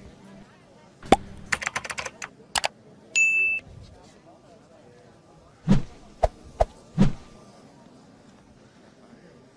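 Flags flap in the wind.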